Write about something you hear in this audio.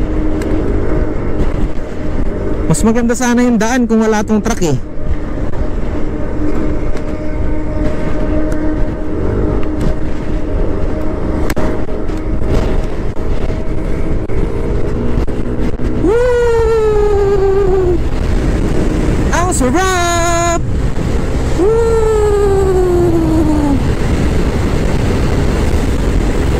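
Wind roars steadily past a moving motorbike.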